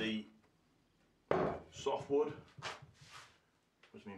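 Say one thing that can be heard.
Wooden boards knock down onto a table.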